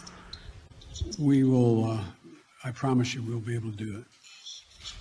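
An elderly man answers calmly through a microphone.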